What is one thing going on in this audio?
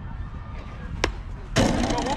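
A bat strikes a ball with a single sharp crack.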